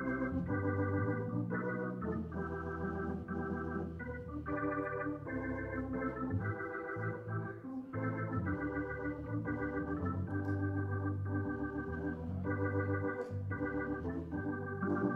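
An organ plays slow, sustained chords in a large, echoing hall.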